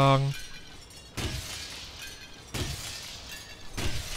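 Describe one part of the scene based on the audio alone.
An axe smashes a glass window.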